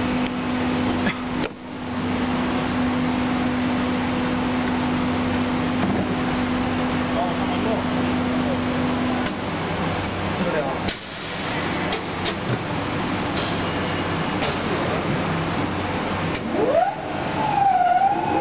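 Industrial machines hum and whir steadily.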